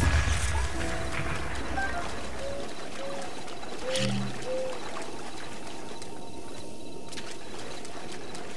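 Footsteps splash through shallow water and rustle through grass.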